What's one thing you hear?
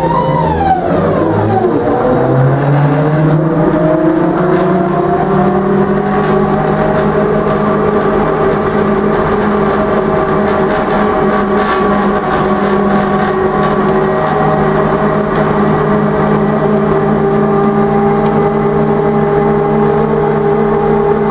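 Wheels rumble and rattle on the rails.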